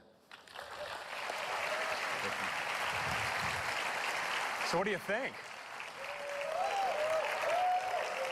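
A large audience applauds and cheers in a big echoing hall.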